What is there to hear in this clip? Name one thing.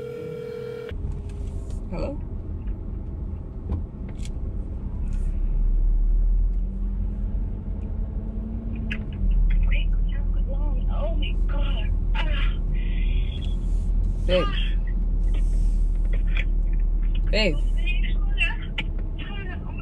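A young person talks on a phone close by.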